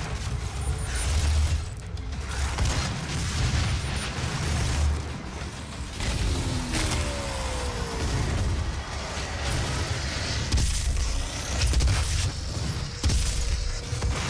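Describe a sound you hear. A beam weapon hums and crackles as it fires.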